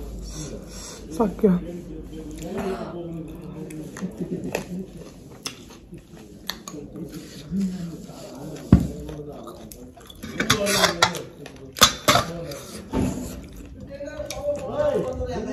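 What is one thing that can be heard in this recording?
A young woman talks calmly close to a microphone.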